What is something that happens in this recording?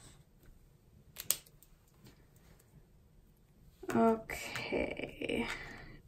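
A plastic marker clicks as it is set down.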